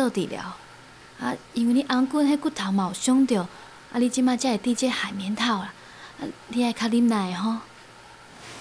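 A woman speaks softly and gently close by.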